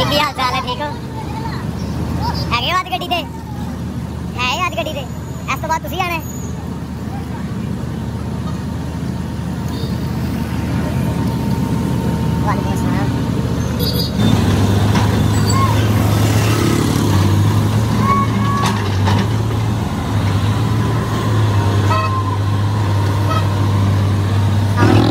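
A heavy machine engine rumbles nearby.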